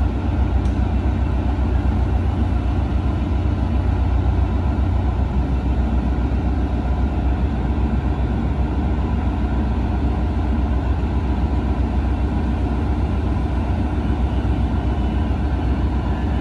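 A passenger train rolls slowly along the rails.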